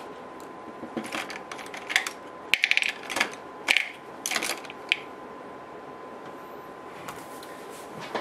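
A makeup brush brushes softly against skin.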